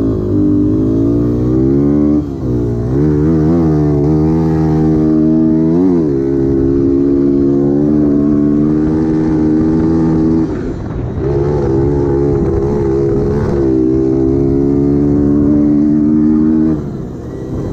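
A dirt bike engine revs hard and drops as it shifts gears close by.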